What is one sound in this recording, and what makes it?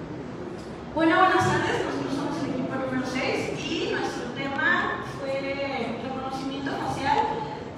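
A young woman speaks into a microphone over loudspeakers in a large echoing hall.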